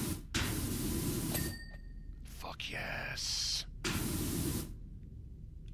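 A pressure washer sprays water in loud hissing bursts.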